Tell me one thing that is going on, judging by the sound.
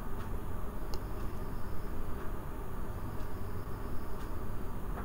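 Vegetables sizzle in a hot pan.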